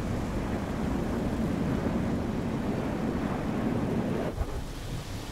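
A jet airliner roars as it lands.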